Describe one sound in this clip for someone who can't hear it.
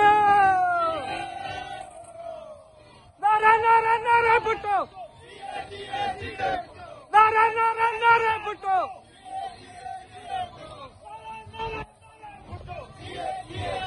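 A crowd of men chants in reply outdoors.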